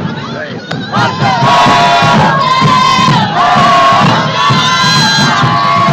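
A marching band's horns play a loud, held tune close by.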